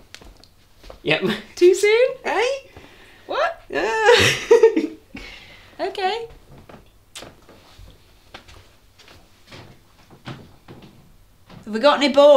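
A young woman laughs and talks softly close by.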